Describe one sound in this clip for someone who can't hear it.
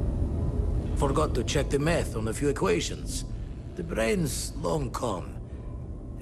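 A man speaks calmly and reflectively, close by.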